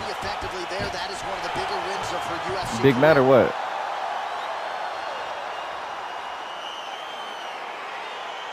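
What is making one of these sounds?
A large crowd cheers and roars in a big arena.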